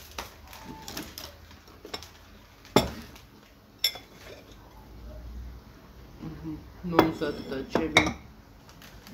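Objects clatter and knock on a table.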